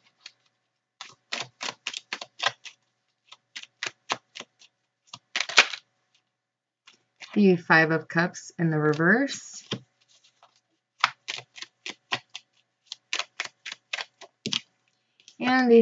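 Playing cards are shuffled with quick riffling flicks.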